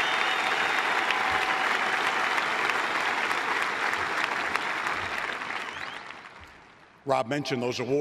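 A large crowd applauds in an open stadium and the applause fades away.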